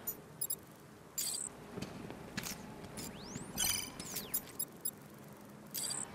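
Electronic interface tones chirp and whoosh as a menu opens and closes.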